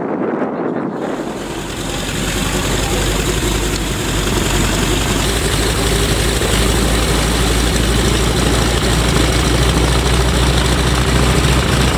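A propeller plane engine roars loudly and steadily.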